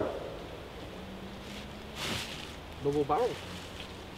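Dry leaves rustle underfoot.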